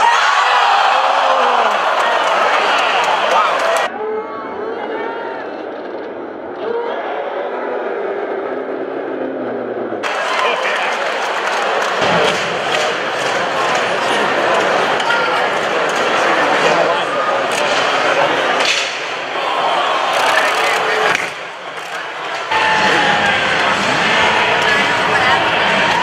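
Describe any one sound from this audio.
A large crowd cheers and roars in an echoing arena.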